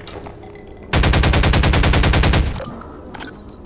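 A machine gun fires a rapid burst close by.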